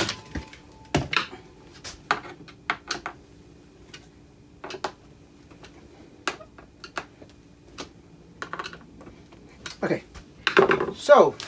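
A hand screwdriver clicks and taps on metal.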